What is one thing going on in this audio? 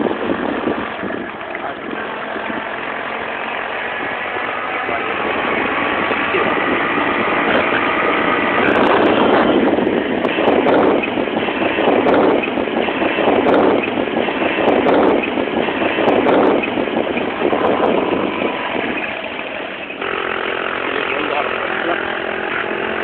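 Wind rushes and buffets loudly past the microphone.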